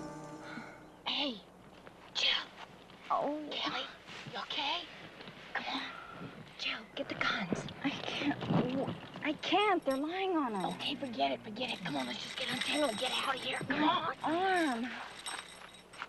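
A woman cries out in distress close by.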